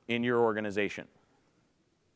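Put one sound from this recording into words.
A man speaks into a microphone in a large hall.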